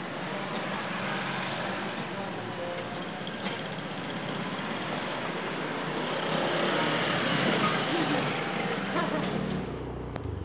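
Motorcycle engines hum as motorbikes ride past.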